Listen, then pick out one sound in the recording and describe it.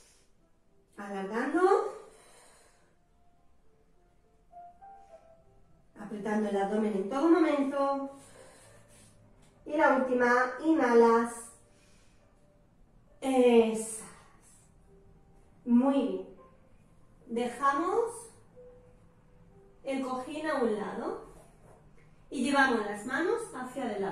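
A woman speaks calmly in short phrases, close by, pausing between them.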